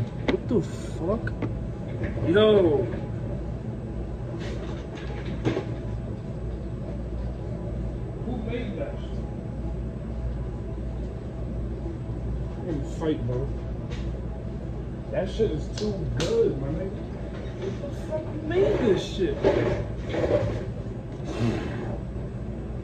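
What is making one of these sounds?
A machine hums steadily in the background.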